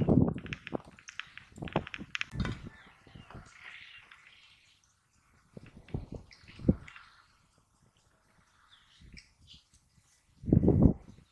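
Hands dig and crumble clods of dry soil.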